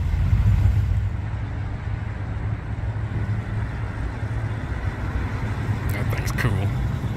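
A muscle car's engine rumbles as the car cruises past.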